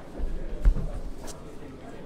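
Playing cards slide and tap on a table.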